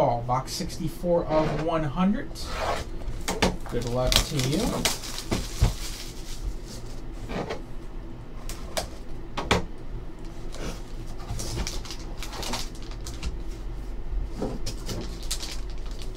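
A cardboard box rustles and scrapes as hands open it.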